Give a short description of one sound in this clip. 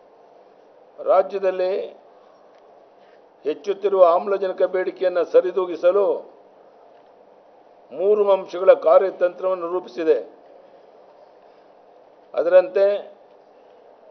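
An elderly man reads out a statement into a microphone in short bursts.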